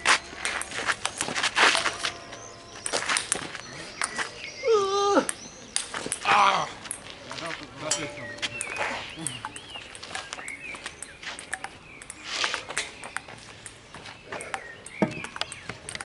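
A table tennis ball clicks back and forth between paddles and a concrete table outdoors.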